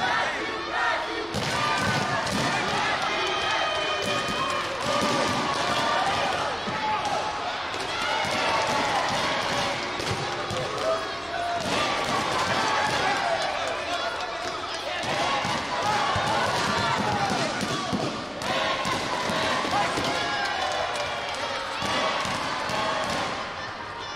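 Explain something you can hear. Kicks thud against padded body protectors.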